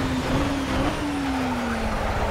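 A racing car engine drops in pitch as the car slows down.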